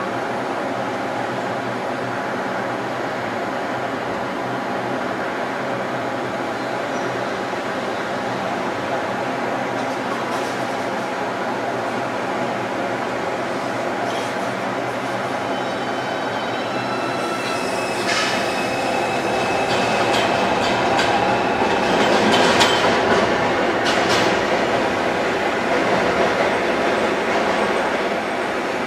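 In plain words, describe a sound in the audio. Heavy excavator engines rumble steadily across a wide open area.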